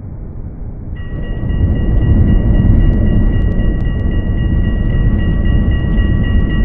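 An electric tram motor whines steadily.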